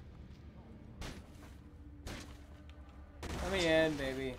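A metal door is kicked open with a bang.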